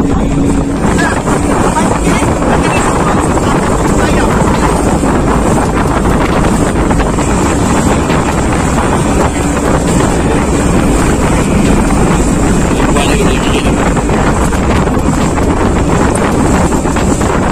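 Water splashes and rushes against a speeding boat.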